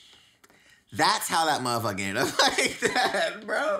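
A young man laughs loudly, close to a microphone.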